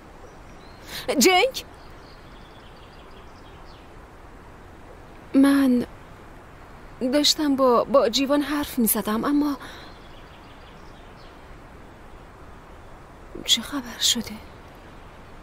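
A young man speaks in a low voice close by.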